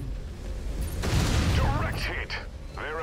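A loud electric explosion crackles and roars.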